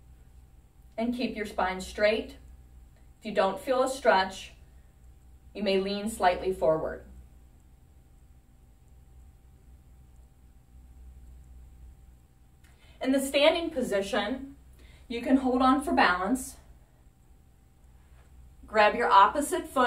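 A middle-aged woman speaks calmly and clearly nearby.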